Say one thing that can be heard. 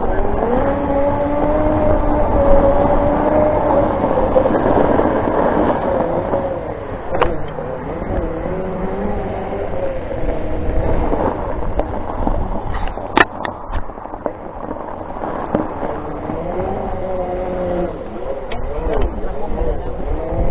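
An electric scooter's motor whines, rising and falling in pitch as it speeds up and slows down.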